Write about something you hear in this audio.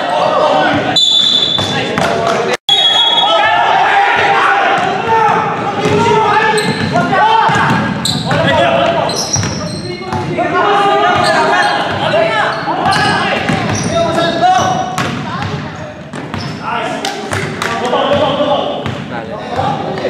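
Men shout and call out across a large echoing gym.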